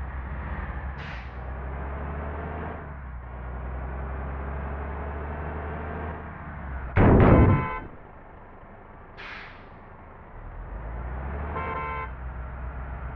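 A bus engine rumbles steadily, rising and falling with speed.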